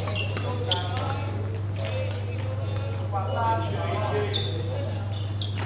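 A man talks casually in a large echoing hall.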